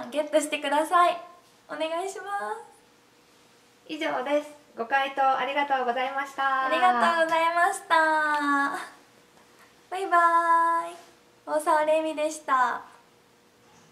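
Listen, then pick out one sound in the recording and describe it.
A young woman speaks cheerfully and close by, with bright laughter.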